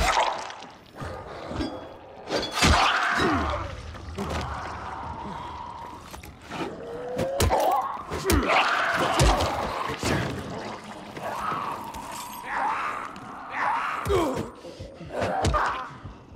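A zombie snarls and growls up close.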